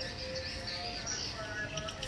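Leaves rustle softly as a hand brushes through a small tree's branches.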